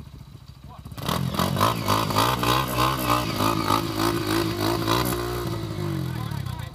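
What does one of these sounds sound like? A dirt bike engine revs hard.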